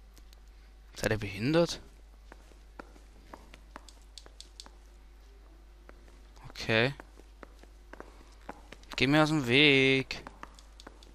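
A man speaks in short phrases nearby.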